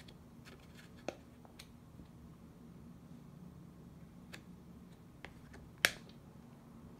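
A stiff plastic banknote crinkles and rustles as a hand flips it over.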